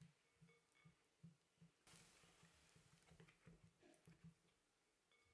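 A whisk taps and swishes rhythmically in a glass bowl of liquid.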